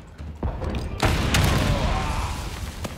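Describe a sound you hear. An explosion booms and crackles with fire.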